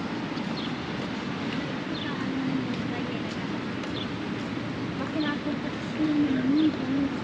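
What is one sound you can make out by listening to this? Footsteps tap on a brick pavement.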